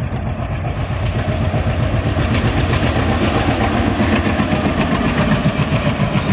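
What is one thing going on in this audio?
Train wheels rumble and clatter on rails close by.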